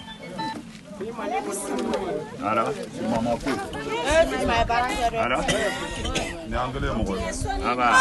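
Several women and men talk loudly over one another nearby.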